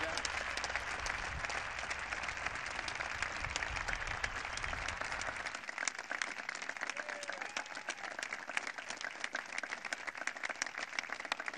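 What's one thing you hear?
A large crowd applauds outdoors.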